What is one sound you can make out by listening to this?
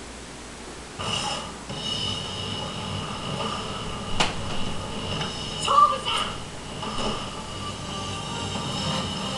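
Fighting game music and effects play from a television.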